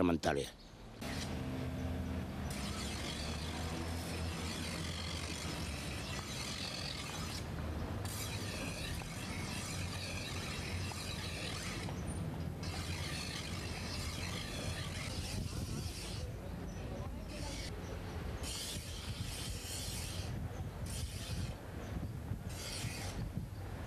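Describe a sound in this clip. A knife blade scrapes and hisses against a grinding wheel.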